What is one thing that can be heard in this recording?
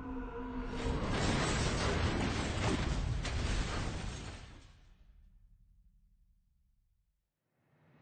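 Wreckage bursts apart with a loud, roaring crash that slowly fades away.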